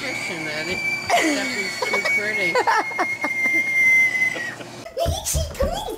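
A young girl screams close by.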